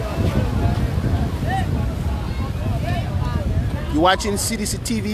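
A crowd of people chatter and call out nearby outdoors.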